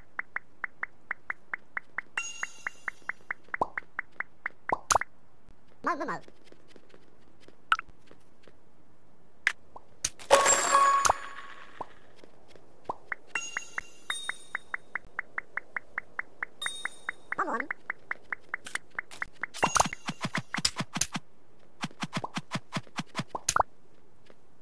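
Quick, even ticking sounds come as a game character breaks blocks.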